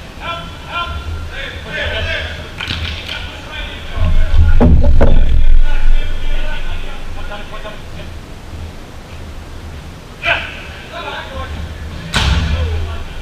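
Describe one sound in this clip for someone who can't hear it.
A ball is kicked with sharp thuds.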